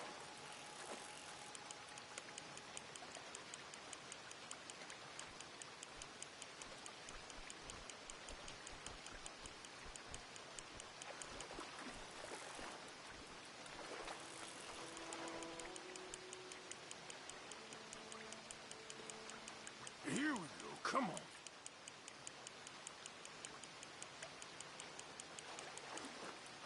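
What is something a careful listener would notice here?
Rain patters steadily on water.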